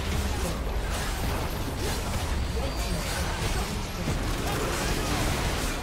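Video game spell blasts and hits crackle and boom in a busy fight.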